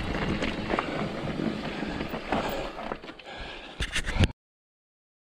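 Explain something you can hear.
Bicycle tyres roll and rattle over a rough dirt trail.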